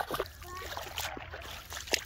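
A fish flaps and splashes in shallow water.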